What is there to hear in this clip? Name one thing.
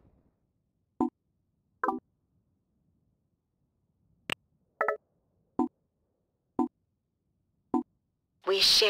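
Short electronic beeps sound as phone buttons are pressed.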